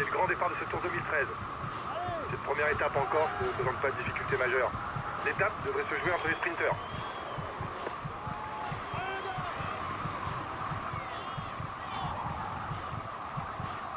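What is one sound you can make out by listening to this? A crowd cheers along a roadside.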